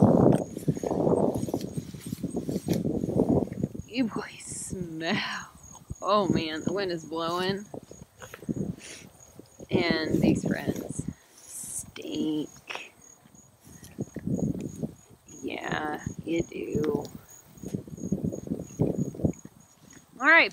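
Goats tear and munch grass close by.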